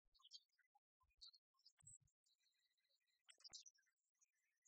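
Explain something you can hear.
Dice rattle and clatter in a tray.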